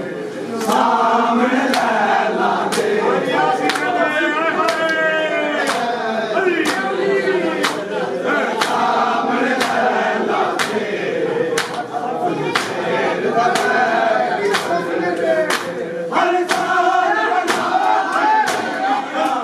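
Men beat their bare chests with their hands in a steady rhythm.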